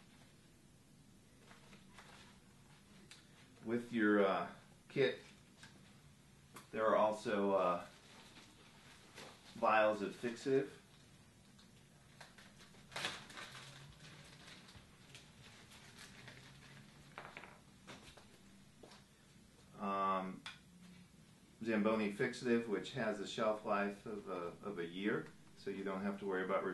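Plastic wrappers crinkle in gloved hands.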